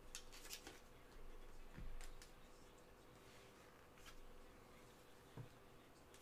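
Plastic card sleeves and cards rustle and click as they are handled close by.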